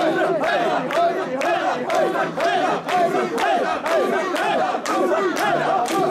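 A crowd of men chants loudly in rhythm close by.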